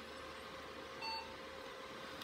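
A computer gives a single short beep.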